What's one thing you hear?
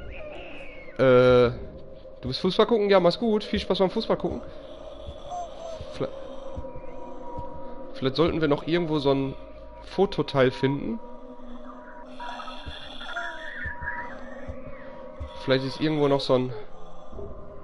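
A young man talks with animation into a headset microphone, close up.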